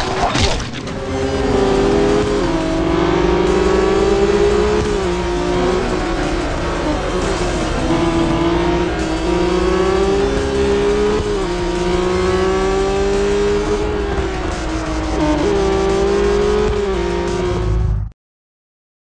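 A racing car engine roars and rises and falls in pitch as it shifts gears.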